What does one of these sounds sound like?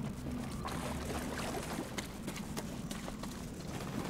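Footsteps thud on grass.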